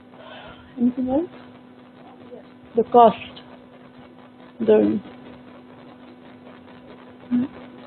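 A young woman speaks through a microphone in short, halting bursts.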